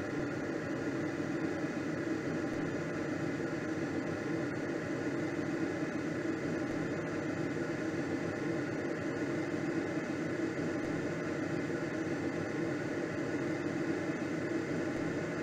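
Wind rushes steadily past a gliding aircraft's cockpit.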